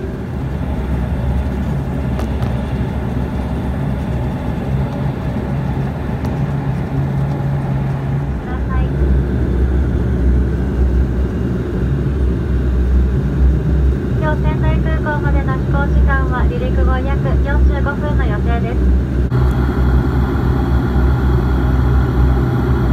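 Aircraft engines drone steadily from inside the cabin.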